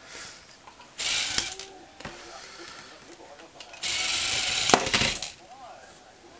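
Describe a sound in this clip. A small toy motor whirs in short bursts.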